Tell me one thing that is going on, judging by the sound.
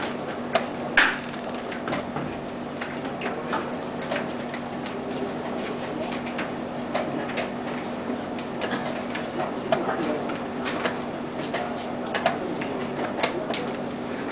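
A chess clock button clicks sharply.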